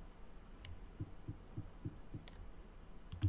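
Footsteps tap steadily across a stone floor.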